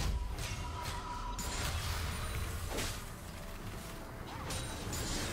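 Magic spell effects whoosh and chime in quick bursts.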